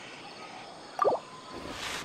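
A soft click sounds as a menu opens.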